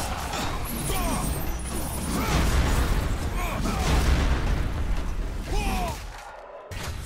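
Blades slash and clang in a fierce, fast fight.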